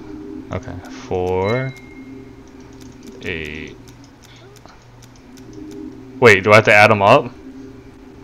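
The dials of a combination padlock click as they turn.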